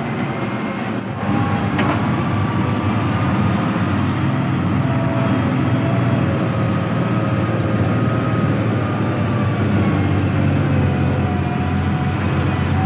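Truck tyres crunch on a gravel road.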